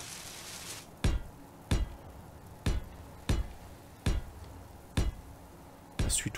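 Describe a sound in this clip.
A building tool thuds sharply, again and again.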